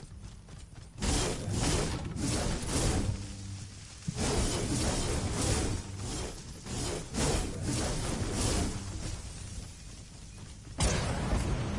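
A pickaxe chops repeatedly into wood.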